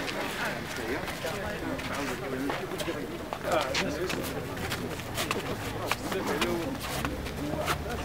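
Footsteps shuffle on stone steps.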